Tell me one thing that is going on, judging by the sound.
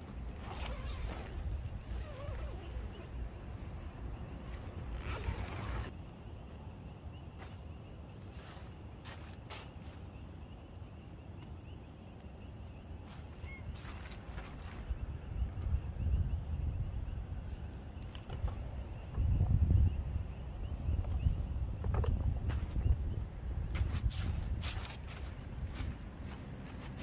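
Tent fabric rustles and flaps as it is handled.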